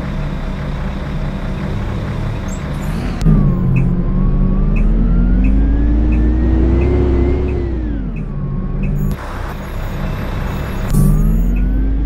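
A diesel bus engine idles with a low rumble.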